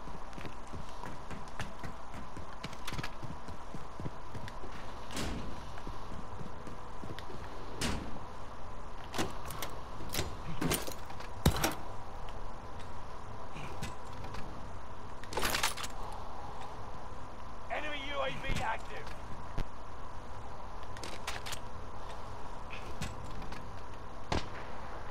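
Footsteps clatter on metal stairs and a hard floor.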